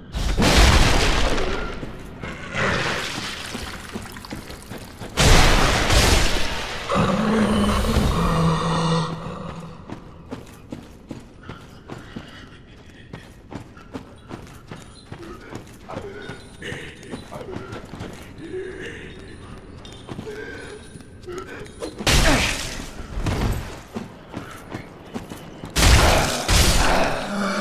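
A sword swings and strikes with heavy crashing blows.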